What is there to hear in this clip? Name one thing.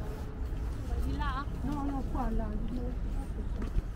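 A woman speaks briefly with animation nearby.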